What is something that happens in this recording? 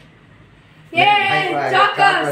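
A boy laughs and talks excitedly close by.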